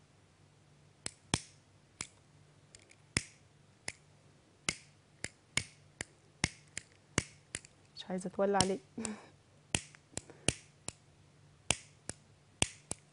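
Small objects click sharply against a hard surface, again and again.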